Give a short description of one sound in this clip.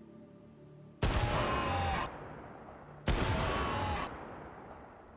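A rifle fires loud, booming shots with a long echoing tail.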